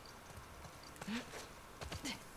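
A young woman grunts as she vaults over a low wall.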